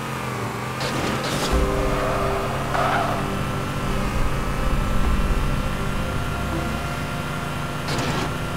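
A vehicle engine hums steadily as it drives through an echoing tunnel.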